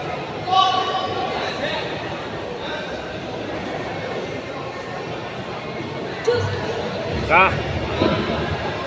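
A crowd chatters and shouts nearby.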